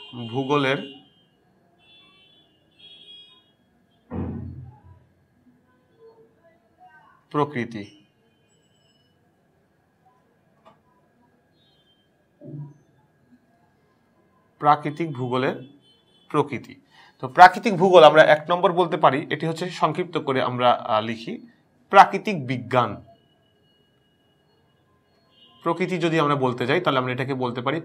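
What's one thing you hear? A young man speaks calmly and clearly into a close microphone, with pauses.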